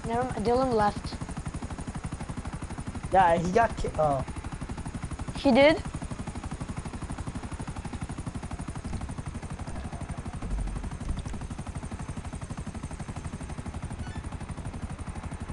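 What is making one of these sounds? A helicopter's rotor chops steadily and rapidly.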